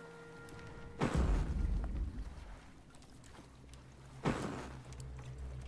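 A paddle splashes into water.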